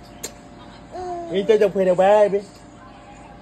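A baby giggles.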